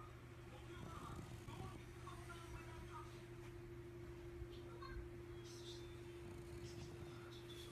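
A dog snores softly while sleeping.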